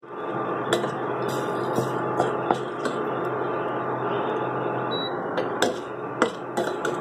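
A metal spoon scrapes and clinks against a steel pot.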